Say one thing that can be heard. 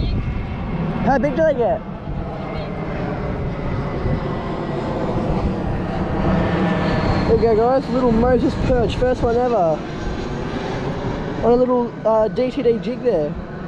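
A man speaks close up with animation, narrating.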